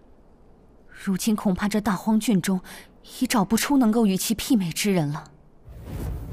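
A young woman speaks calmly and gravely.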